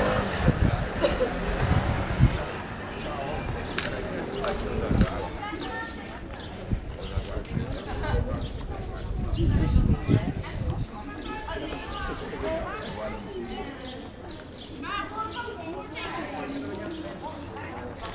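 Several men and women chatter nearby in the open air.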